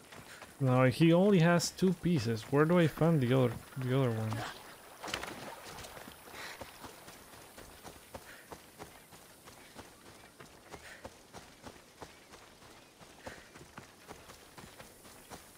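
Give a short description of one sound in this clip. Footsteps crunch on dry ground at a running pace.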